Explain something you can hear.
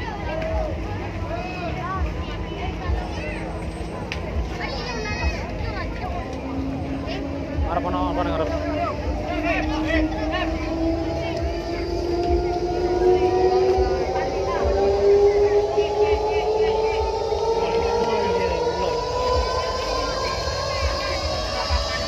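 Loud music booms from large loudspeakers outdoors.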